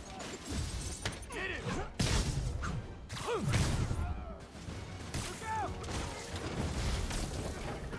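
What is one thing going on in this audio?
Punches and kicks land with heavy thuds during a brawl.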